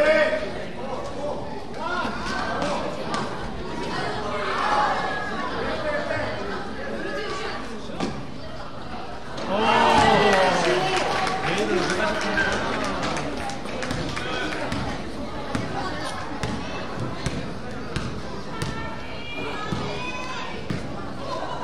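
Young players shout and call out across a large echoing gym.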